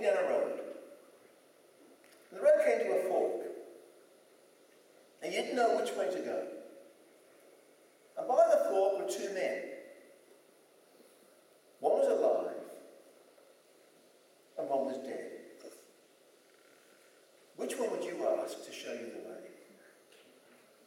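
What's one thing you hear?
An older man speaks with animation in short bursts through a microphone, in a reverberant hall.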